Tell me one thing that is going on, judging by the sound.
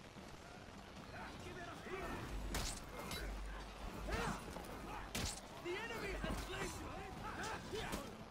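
Steel blades clash and clang in a melee.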